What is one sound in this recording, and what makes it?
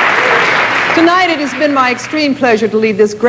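A woman speaks clearly to an audience.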